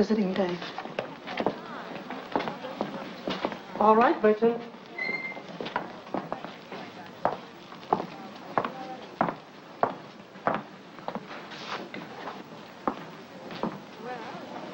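Heels click on a hard floor.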